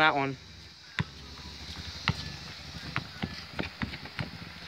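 A basketball bounces on hard pavement outdoors.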